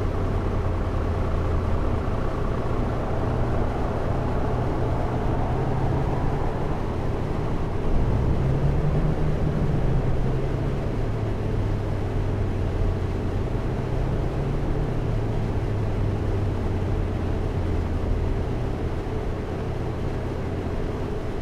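A bus engine hums steadily as the bus rolls slowly forward.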